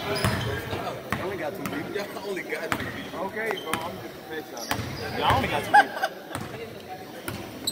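A basketball bounces on a hard court, echoing in a large hall.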